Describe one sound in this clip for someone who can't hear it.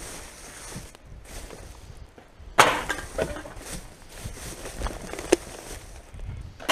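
A plastic bag crinkles and rustles as gloved hands rummage through it.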